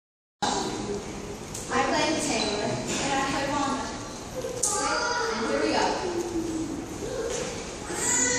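A young girl sings into a microphone in an echoing hall.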